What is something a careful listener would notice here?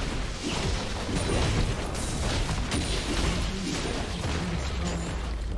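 Video game spell effects crackle, whoosh and boom in a busy battle.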